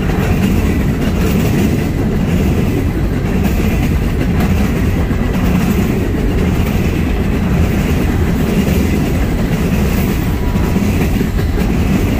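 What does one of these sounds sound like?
Steel wheels squeal faintly on the rails.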